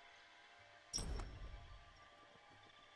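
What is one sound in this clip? A menu swoosh lands with a deep rumbling thud.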